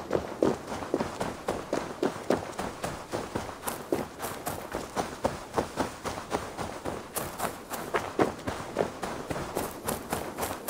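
Footsteps run quickly along a dirt path.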